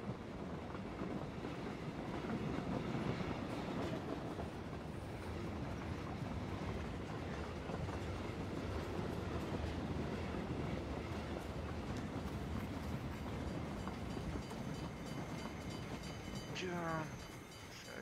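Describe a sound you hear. A diesel train rumbles loudly past close by.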